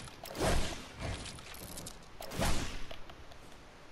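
Game building pieces slam into place with loud thuds.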